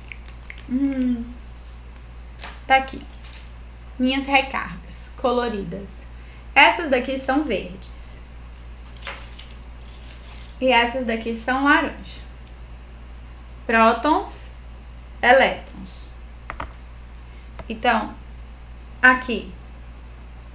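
A young woman speaks calmly into a close microphone, in short phrases with pauses.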